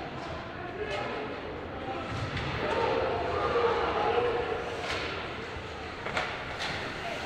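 A hockey stick smacks a puck with a sharp crack.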